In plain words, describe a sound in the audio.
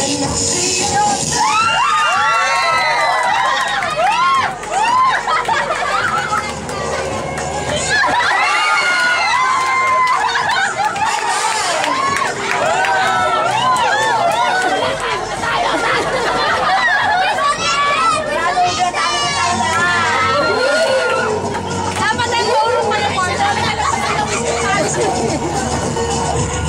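Young men and women laugh and cheer with excitement close by.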